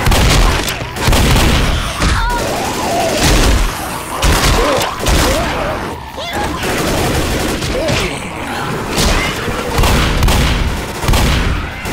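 Zombies snarl and growl up close.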